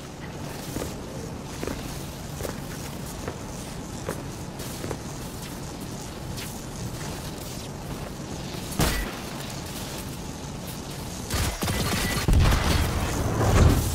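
Electricity crackles and buzzes steadily.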